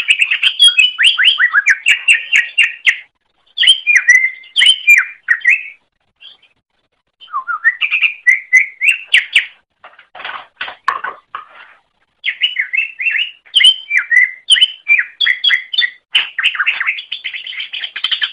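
A small bird sings a fast, chattering song of high whistles and trills, pausing now and then.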